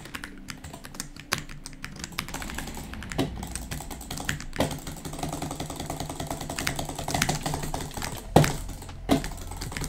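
A computer mouse clicks quickly.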